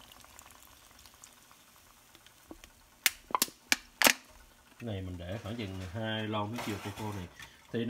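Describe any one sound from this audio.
Foam fizzes and crackles softly in a pot.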